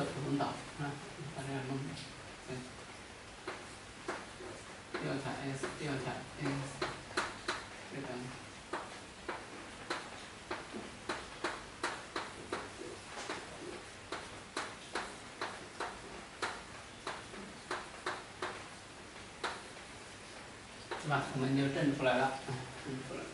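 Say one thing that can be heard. A man lectures calmly, close to a microphone.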